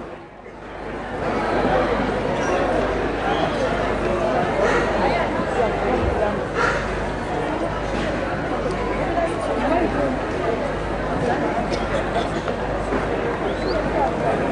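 A man speaks through loudspeakers in a large tent, his voice echoing.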